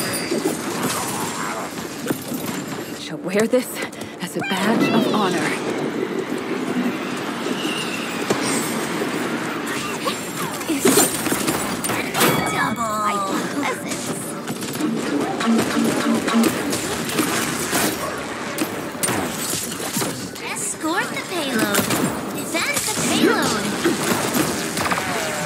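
Video game guns fire in rapid bursts.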